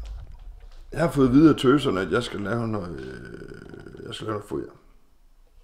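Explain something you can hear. A middle-aged man speaks close by in a low voice.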